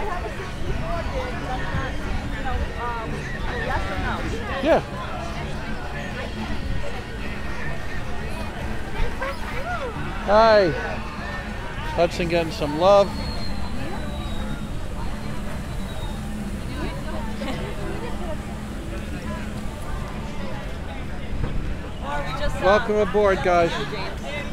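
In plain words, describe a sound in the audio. Men and women chat nearby in a busy outdoor crowd.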